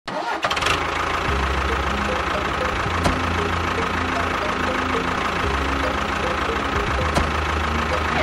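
A small tractor engine chugs steadily.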